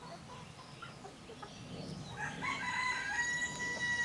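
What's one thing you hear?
A hen clucks softly outdoors.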